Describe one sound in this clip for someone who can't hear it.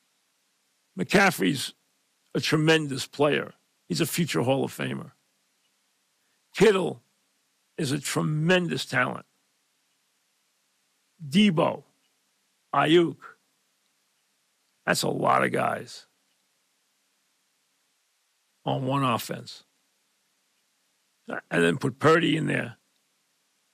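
An older man speaks calmly into a microphone in short phrases separated by pauses.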